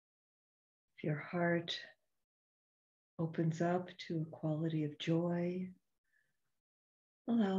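An older woman speaks calmly and slowly, heard through an online call.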